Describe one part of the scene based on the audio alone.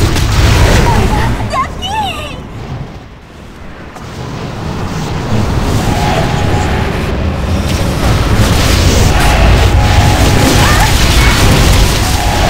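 Magic spells crackle and burst in loud bursts of noise.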